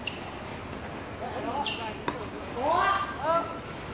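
A tennis racket strikes a ball outdoors.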